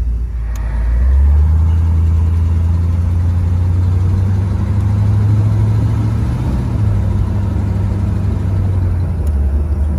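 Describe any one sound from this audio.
A car engine drones steadily as the car drives along the road.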